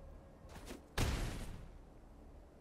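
A short magical whoosh sounds as a game card strikes.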